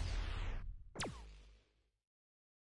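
A menu chime sounds as the game pauses.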